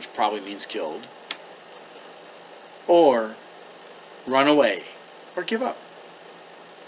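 A man talks calmly and close up, in short phrases with pauses.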